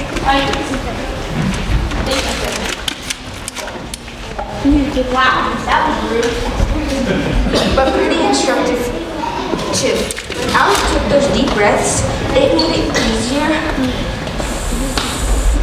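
Children speak loudly in a large echoing hall.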